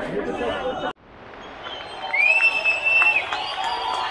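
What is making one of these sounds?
A crowd murmurs and calls out in a busy street.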